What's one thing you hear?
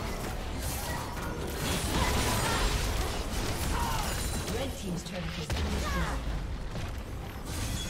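Magic blasts whoosh and crackle in a fast battle.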